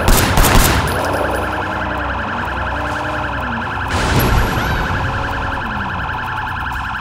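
A police siren wails up and down.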